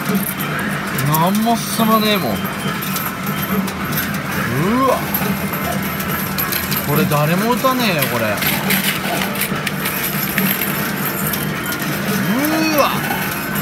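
A coin game machine plays bright electronic jingles.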